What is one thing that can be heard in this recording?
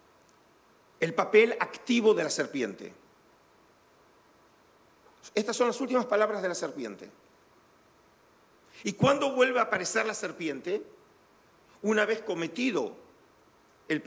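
A middle-aged man speaks calmly through a microphone in short phrases with pauses.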